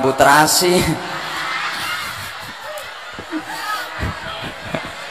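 A crowd laughs and murmurs.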